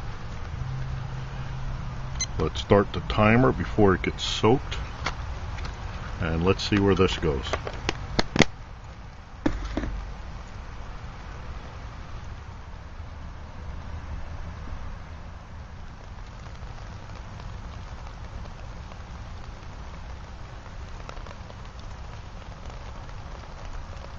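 A small wood fire crackles softly inside a metal can.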